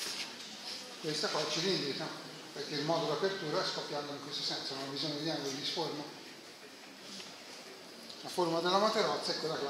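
A man speaks calmly close by, with short pauses.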